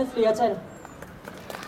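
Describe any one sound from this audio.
A middle-aged woman reads out through a microphone and loudspeakers outdoors.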